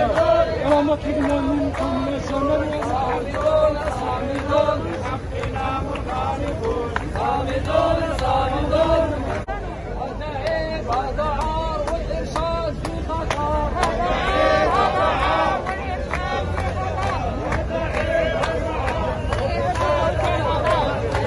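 A crowd of men and women chants slogans loudly together outdoors.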